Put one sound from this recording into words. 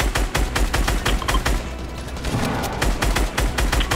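A video game gun fires in short bursts.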